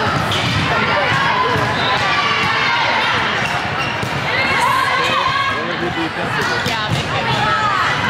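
A volleyball thumps off players' arms.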